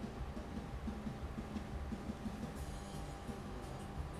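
A glass jar is set down on a table with a soft knock.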